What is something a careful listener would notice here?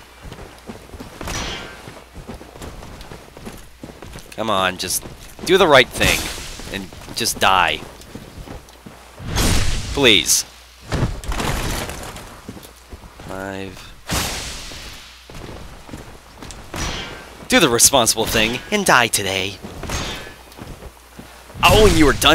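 Swords clash and clang against metal armour and shields.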